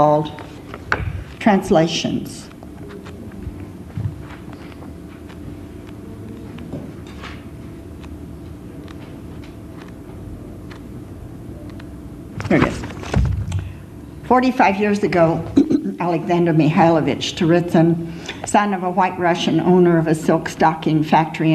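Pages of a book rustle as they turn.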